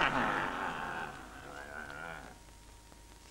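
Several men shout excitedly at once.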